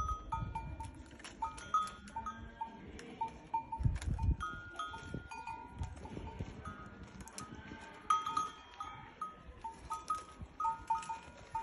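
A camel's bell clinks and clanks.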